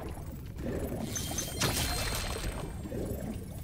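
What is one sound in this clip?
A bright sparkling chime rings out.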